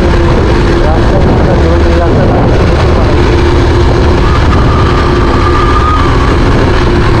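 A motorcycle rides along a paved road at speed.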